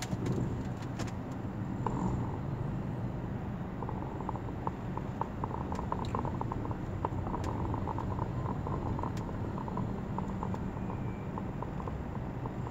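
A car engine hums low and steady from inside a vehicle.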